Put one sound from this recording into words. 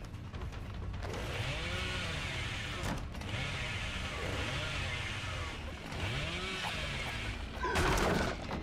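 A chainsaw revs loudly in repeated bursts.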